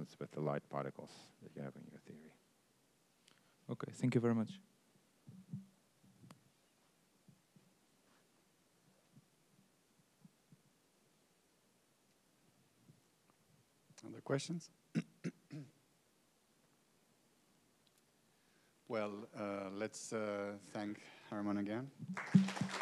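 A middle-aged man speaks calmly through a clip-on microphone, with pauses.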